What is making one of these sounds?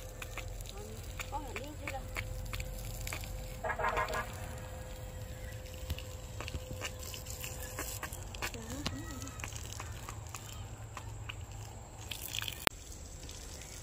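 Water splashes from a hose onto soil.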